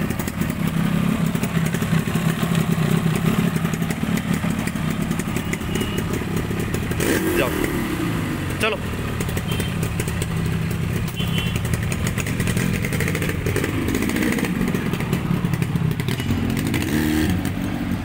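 A Yamaha RD350 two-stroke twin motorcycle idles.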